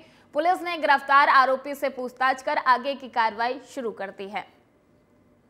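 A woman speaks loudly and quickly close to a microphone.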